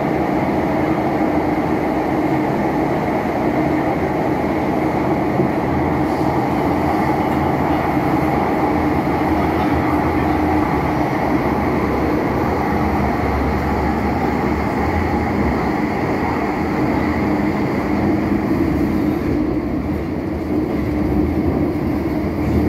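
A train rumbles and hums steadily as it rolls along the track.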